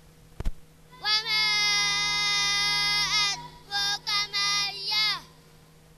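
Young women chant together in long, drawn-out tones through a loudspeaker.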